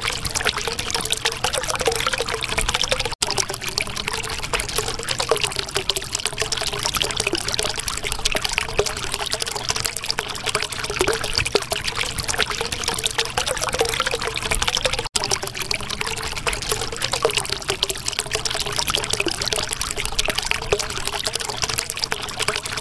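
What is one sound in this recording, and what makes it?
Water bubbles and gurgles steadily.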